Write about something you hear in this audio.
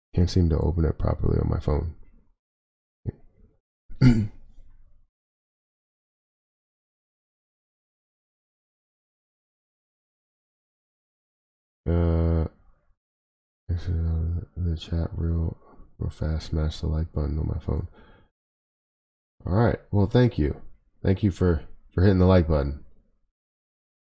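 A young man speaks calmly and closely into a microphone, with pauses.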